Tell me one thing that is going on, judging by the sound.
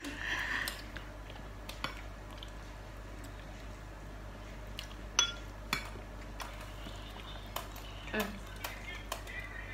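Cutlery clinks against a bowl.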